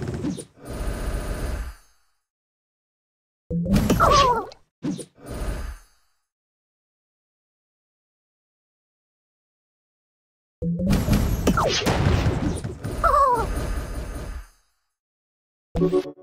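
Cartoonish game sound effects pop, burst and whoosh in short flurries.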